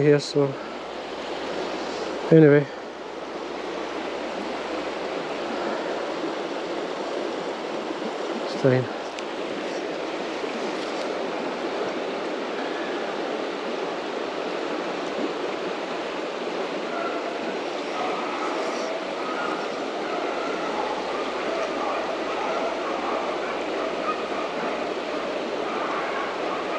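A river rushes steadily over shallow rapids.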